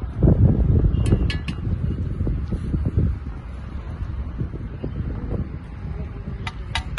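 Bricks clink and knock as they are laid.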